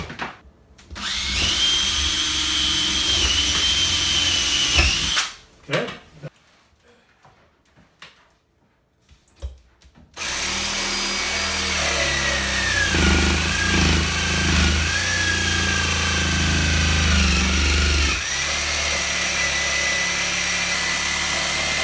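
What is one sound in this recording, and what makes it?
A power tool whines steadily.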